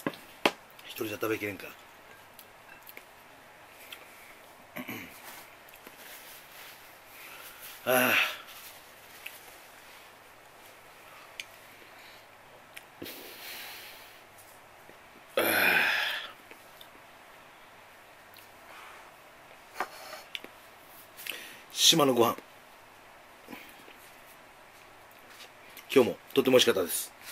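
A middle-aged man speaks close to a microphone in short bursts, with pauses.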